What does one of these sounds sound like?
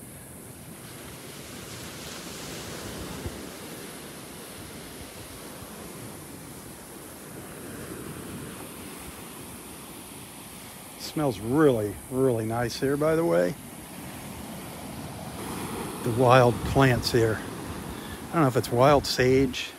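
Gentle waves wash onto a sandy shore.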